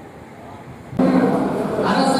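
A group of men murmur in a hall.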